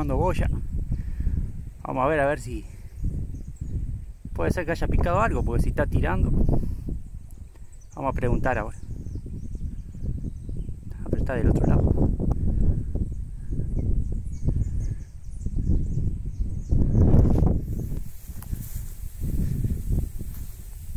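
Wind rumbles and gusts outdoors, rustling the bushes.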